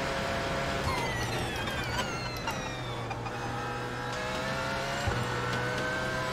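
A racing car engine whines loudly, dropping in pitch as it slows, then climbing again.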